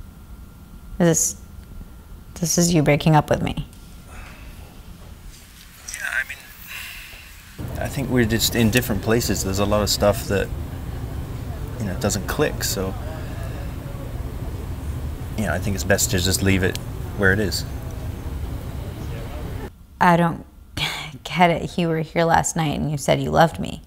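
A young woman speaks quietly and upset over a phone.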